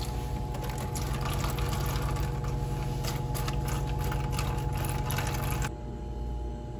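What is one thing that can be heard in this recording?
Water trickles as it is poured.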